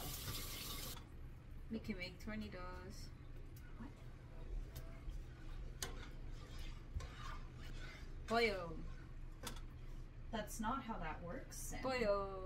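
A spoon scrapes and stirs inside a metal pot.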